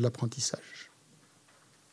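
A middle-aged man speaks briefly and calmly into a microphone, then pauses.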